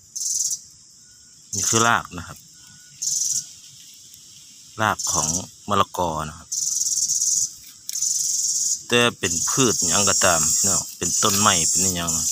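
A stick scrapes and pokes through dry dirt and leaves.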